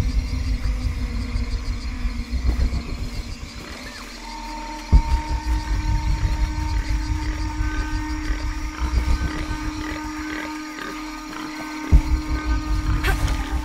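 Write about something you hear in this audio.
Footsteps crunch on a leafy forest floor.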